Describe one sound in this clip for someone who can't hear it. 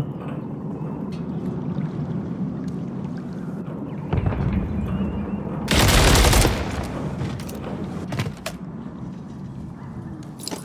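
Gunfire bursts out in loud, sharp cracks.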